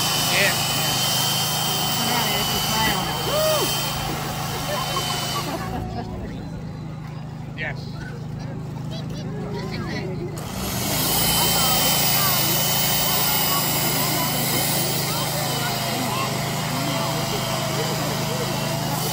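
A chainsaw buzzes and grinds through ice close by.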